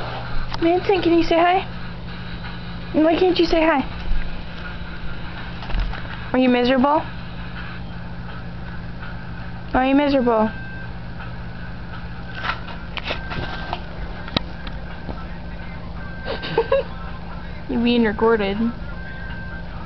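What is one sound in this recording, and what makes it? A dog whines and moans close by in short, rising and falling bursts.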